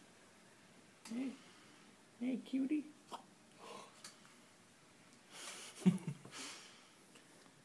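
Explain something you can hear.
A newborn baby fusses quietly.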